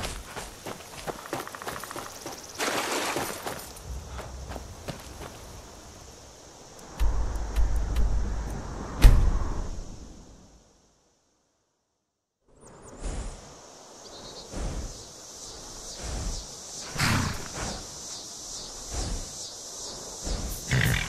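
Footsteps crunch on a forest floor.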